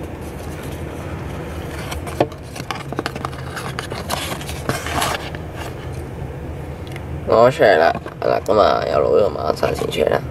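Paper cards rustle and tap as they are handled close by.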